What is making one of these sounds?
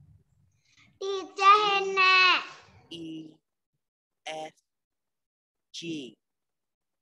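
A child speaks in short bursts over an online call.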